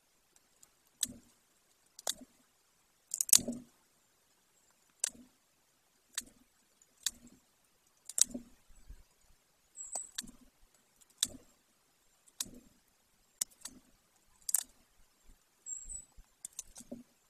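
A large bird tears at meat with its beak, with sharp snapping and ripping sounds.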